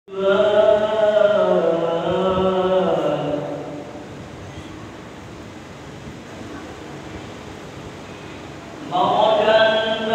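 A man chants in a long, drawn-out melody through a loudspeaker, echoing in a large hall.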